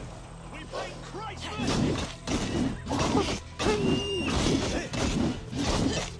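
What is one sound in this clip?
A wolf snarls and growls fiercely.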